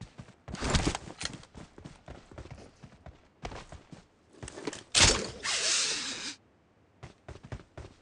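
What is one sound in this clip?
Quick footsteps run over ground.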